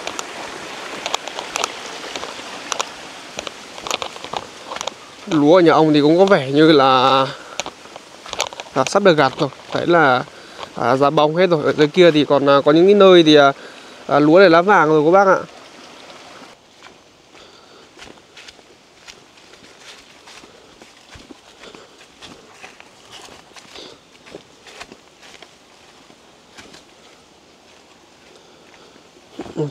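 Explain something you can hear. Footsteps crunch on dry leaves and twigs along a path.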